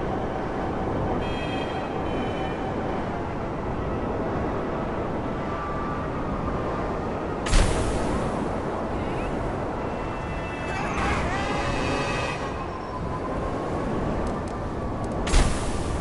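A motorbike engine roars steadily.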